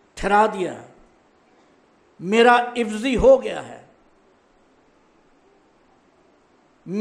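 An elderly man reads out slowly and calmly into a microphone, with short pauses.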